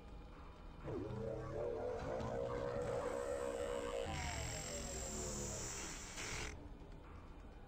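Electricity hums and crackles.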